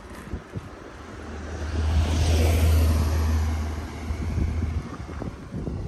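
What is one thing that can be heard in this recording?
A car drives past nearby on the road, rising and fading.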